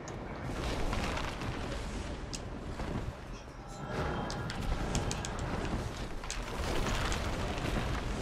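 A fireball bursts with a loud roar.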